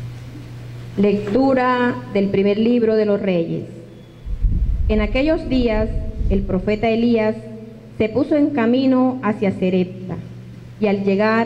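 A woman speaks into a microphone, heard through a loudspeaker.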